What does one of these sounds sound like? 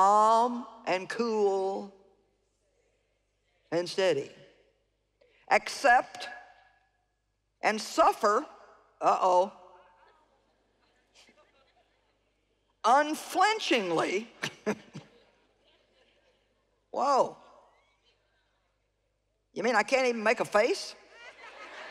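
A middle-aged woman speaks with emphasis into a microphone, in short phrases with pauses.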